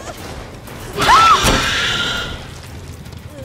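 A blade swings and strikes with a sudden loud crash.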